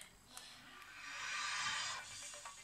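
A portable disc player whirs softly as its disc spins.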